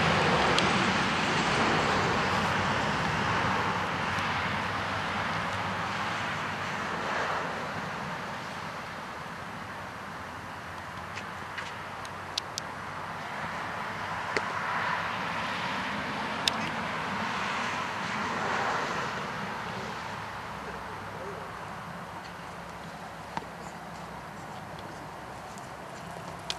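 Wind rushes steadily outdoors.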